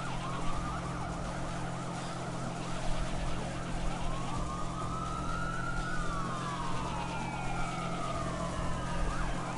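A motorboat engine drones steadily.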